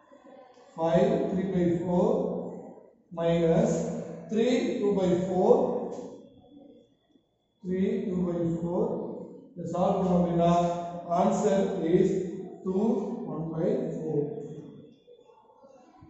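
A young man speaks clearly and steadily, as if explaining a lesson, close to a microphone.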